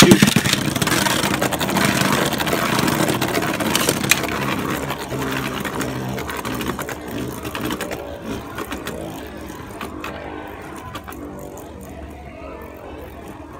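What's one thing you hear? Spinning tops clash with sharp clicks.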